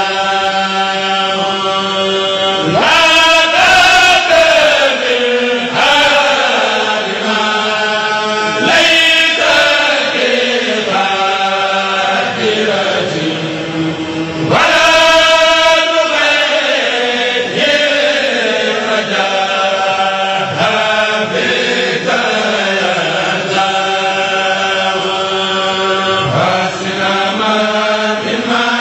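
A man sings a chant into a microphone, with a strong voice.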